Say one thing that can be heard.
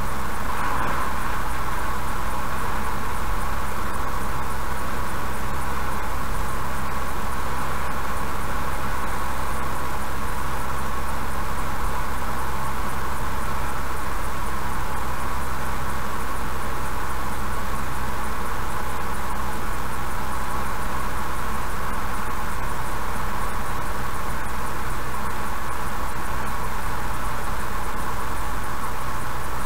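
Tyres roll steadily on asphalt.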